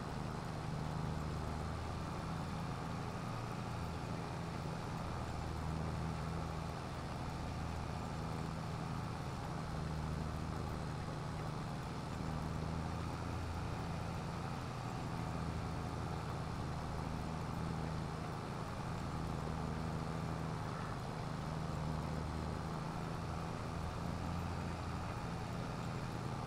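A tractor engine drones steadily at a low pitch.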